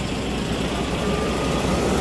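A forklift engine rumbles nearby.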